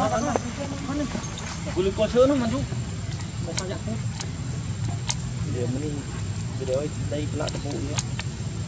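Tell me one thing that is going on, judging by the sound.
A baby monkey squeals and whimpers close by.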